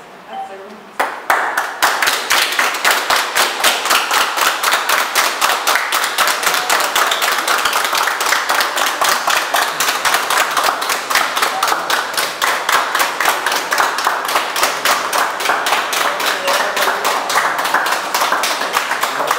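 A group of people applaud steadily nearby.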